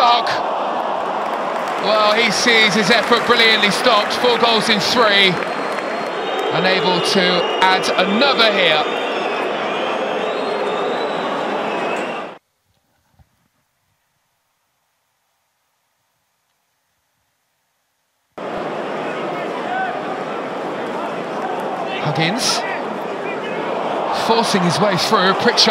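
A large stadium crowd roars and chants outdoors.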